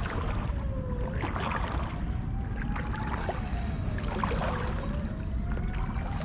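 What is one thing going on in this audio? A fishing reel clicks as it is handled.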